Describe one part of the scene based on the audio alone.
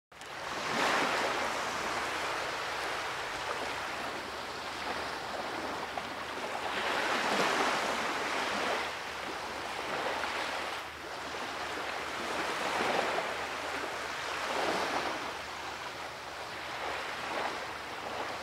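Waves wash up onto a pebbly shore and pull back in repeated swells.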